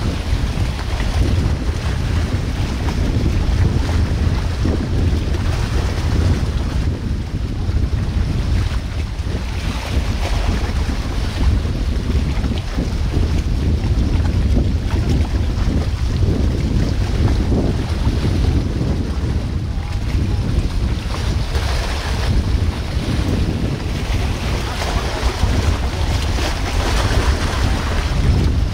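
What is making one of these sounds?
A river rushes and splashes against rocks nearby.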